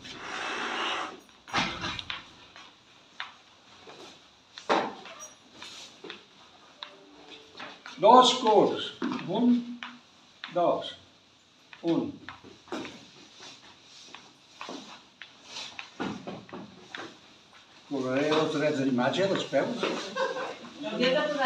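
Shoes tap and scuff on a hard floor.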